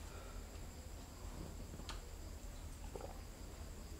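A man sips a drink from a cup.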